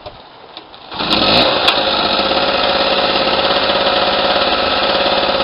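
A small generator engine starts and runs with a loud steady drone.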